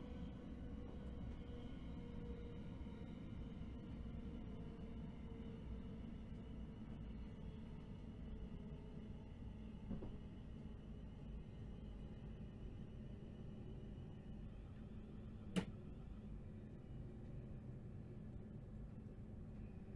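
A train engine hums steadily while the train runs along the track.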